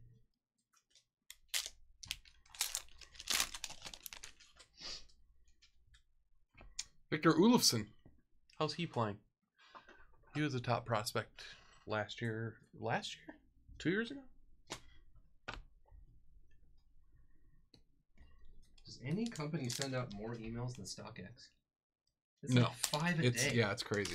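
A blade slices through a foil wrapper.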